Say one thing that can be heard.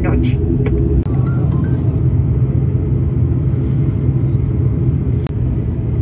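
Aircraft engines rumble steadily across an airport apron.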